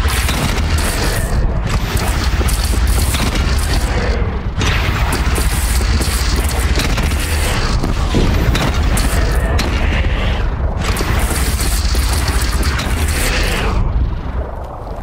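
A heavy gun fires rapid loud bursts.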